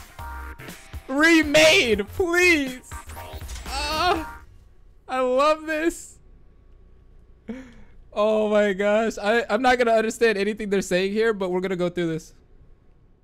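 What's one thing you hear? A young man speaks with animation into a close microphone, his voice rising and falling expressively.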